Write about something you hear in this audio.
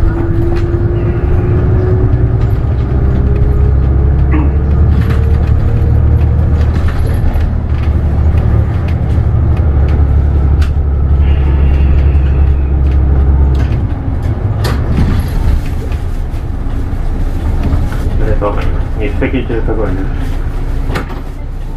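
A bus engine hums low and steady as the bus drives along.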